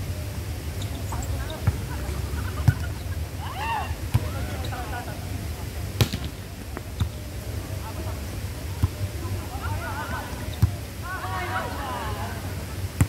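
Young players call out to each other outdoors.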